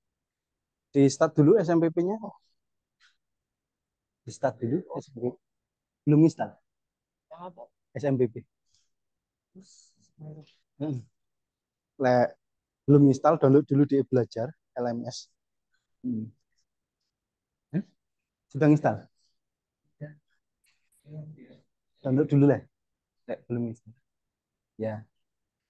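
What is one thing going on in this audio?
A man speaks in short phrases with pauses.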